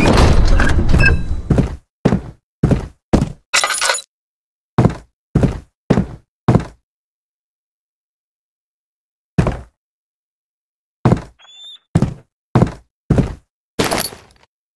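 Footsteps thud slowly on wooden floorboards.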